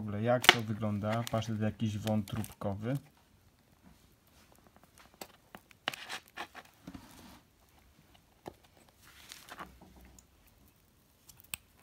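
A ring-pull tin lid clicks and scrapes as it is pried open.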